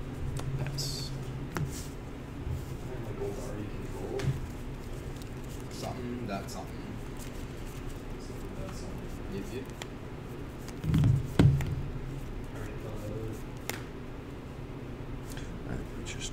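Playing cards riffle in a hand.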